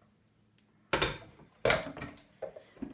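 A coffee maker's lid and button click.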